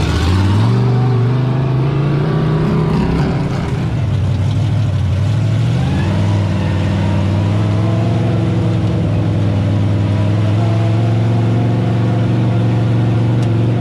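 A race car engine roars and shifts gears while racing.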